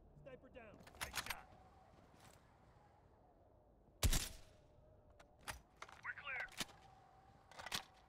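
A rifle bolt clacks as it is worked.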